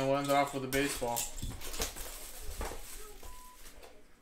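Plastic wrapping rustles as it is pulled off a box.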